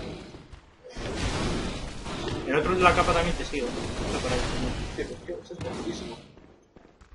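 A heavy blade slashes and strikes with wet, crunching hits.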